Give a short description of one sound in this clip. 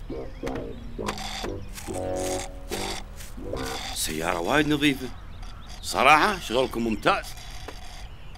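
Children slurp drinks through straws.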